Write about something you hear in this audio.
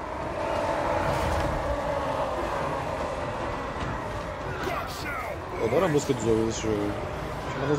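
A large battle roars with distant shouting crowds.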